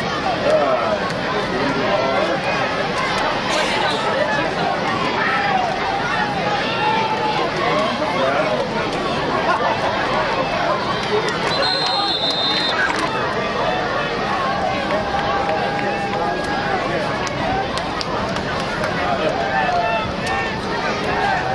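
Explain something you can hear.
A crowd of young men chatters and calls out outdoors.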